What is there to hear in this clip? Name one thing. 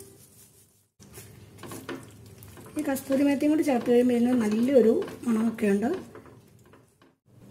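A spatula scrapes and stirs food in a metal wok.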